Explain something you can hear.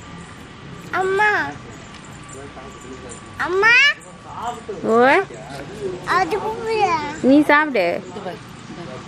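A small child babbles and cries out loudly, close by.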